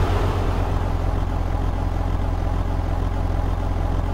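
Another car drives past.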